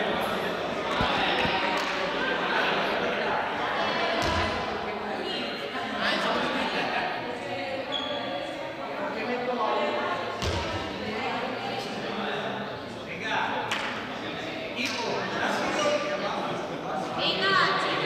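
Young girls chatter and call out, echoing through a large hall.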